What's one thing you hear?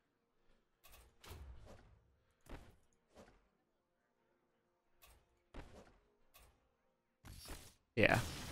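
Short electronic game sound effects pop and thump.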